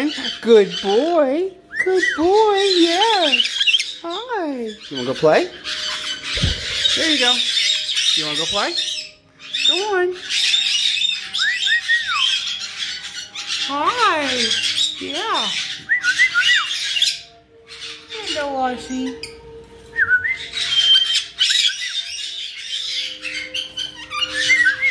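Many parrots chatter and screech loudly all around.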